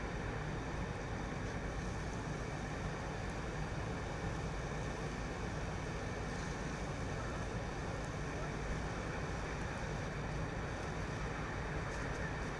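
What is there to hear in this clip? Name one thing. Flames crackle in a burning car.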